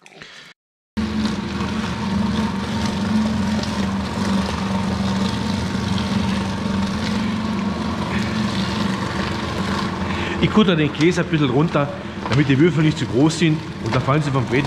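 A machine starts abruptly and hums loudly and steadily.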